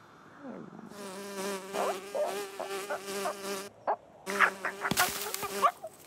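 A bee buzzes.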